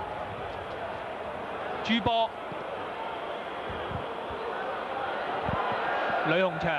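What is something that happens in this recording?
A crowd murmurs in a large open stadium.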